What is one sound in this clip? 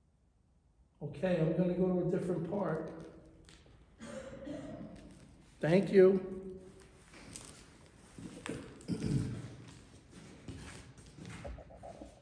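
A middle-aged man speaks with animation close by, in an echoing room.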